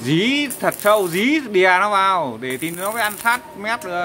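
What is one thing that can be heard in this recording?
An electric welding arc crackles and hisses.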